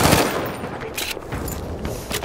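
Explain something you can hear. A rifle bolt clacks as a clip is loaded.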